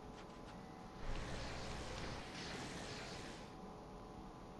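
Wind howls through a snowstorm.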